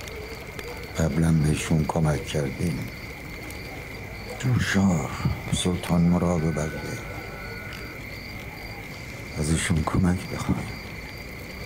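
An elderly man speaks calmly and gravely.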